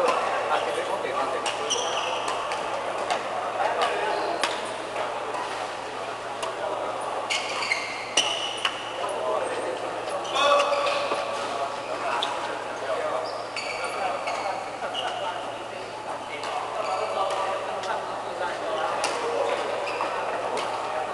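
Men call out and chatter between rallies.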